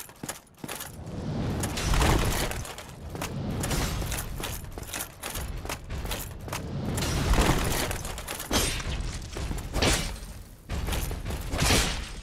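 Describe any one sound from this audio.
A heavy weapon swings and crashes with deep, booming thuds.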